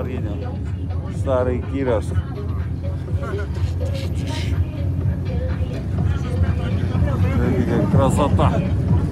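Tyres rumble on a snowy road.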